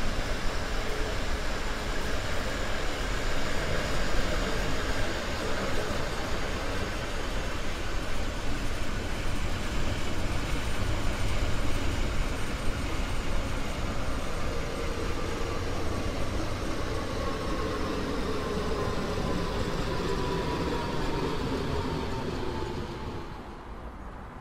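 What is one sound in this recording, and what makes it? An electric train rumbles along the rails at speed.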